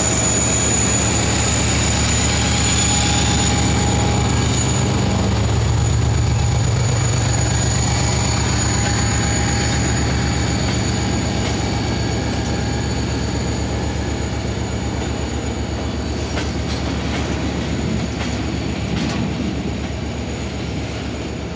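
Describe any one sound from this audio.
A diesel locomotive engine rumbles steadily as it pulls past close by.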